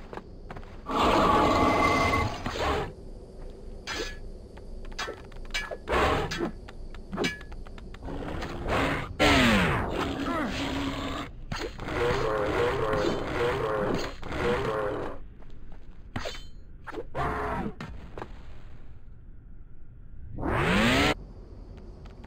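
Fiery blasts whoosh and roar.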